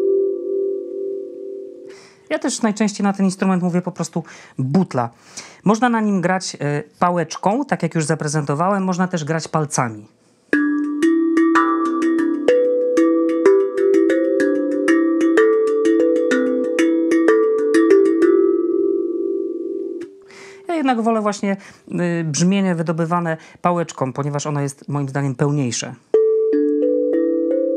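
A steel tongue drum rings with soft, bell-like notes, played by hand.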